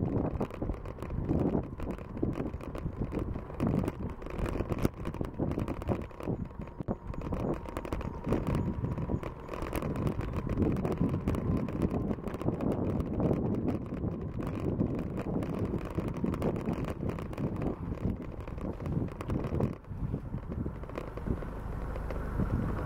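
Bicycle tyres roll on a paved path.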